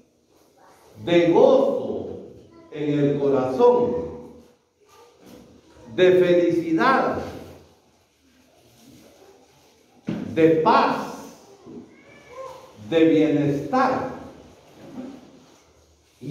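A man speaks with animation into a microphone, heard through a loudspeaker in an echoing room.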